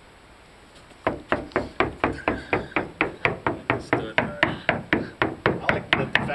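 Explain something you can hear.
A man knocks rapidly and steadily on a hollow wall.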